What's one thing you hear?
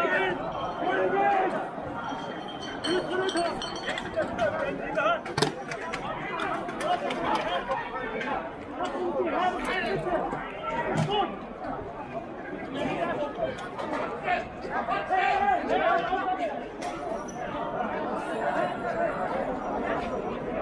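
A large crowd talks and shouts all around outdoors.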